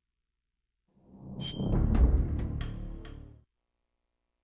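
A deep booming whoosh swells and fades.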